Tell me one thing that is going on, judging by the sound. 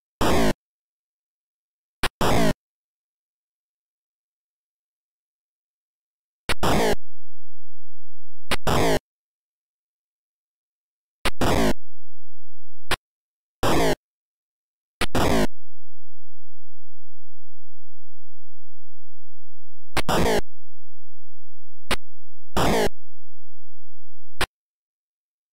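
Short, harsh electronic punch and hit sounds from a retro video game come in bursts.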